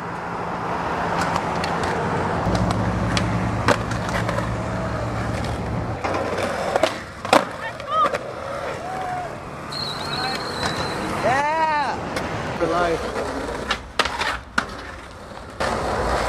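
A skateboard clacks sharply against concrete.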